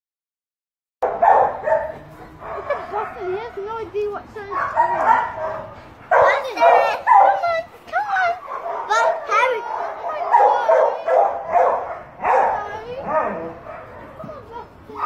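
A young boy talks softly to a dog, close by.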